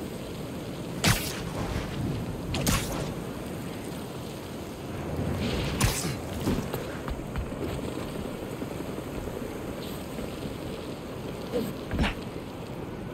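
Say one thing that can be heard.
Sharp whooshing swipes cut through the air now and then.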